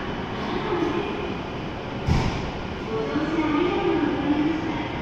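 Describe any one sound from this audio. A stationary high-speed train hums steadily in an echoing station.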